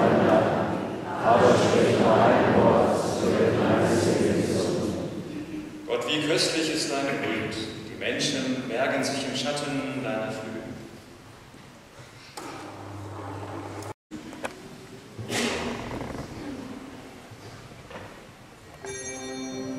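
A man chants and speaks in a large echoing hall.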